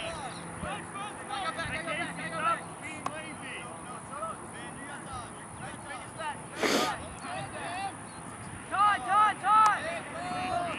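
Young men shout and call to each other across an open field in the distance.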